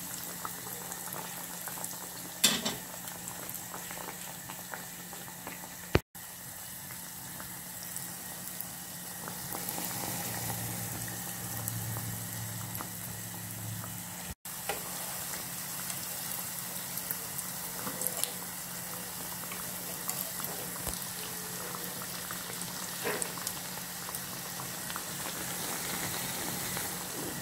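Oil sizzles and crackles steadily as dough fries.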